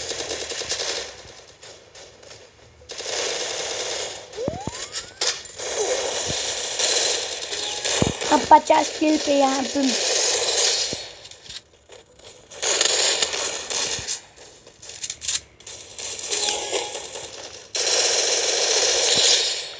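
Automatic guns fire in rapid bursts.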